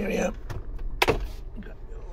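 A glove box lid clicks open.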